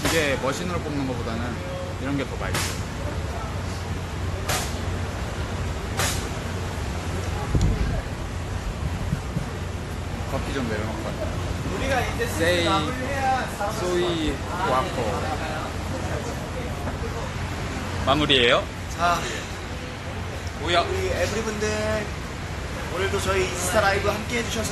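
A young man talks with animation close to a phone microphone.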